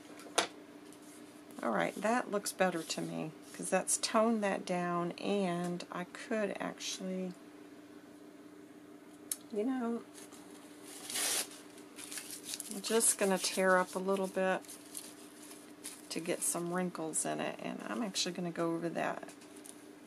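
Paper rustles as hands smooth and fold it.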